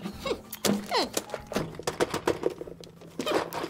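Hands pat and tap on a wrapped box.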